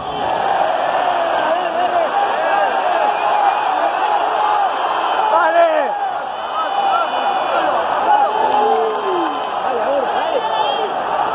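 Men close by shout excitedly.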